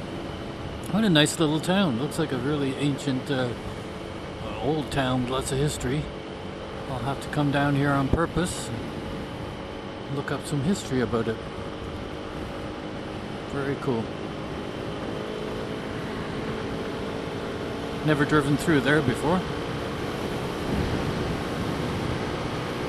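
Wind rushes steadily past a moving rider.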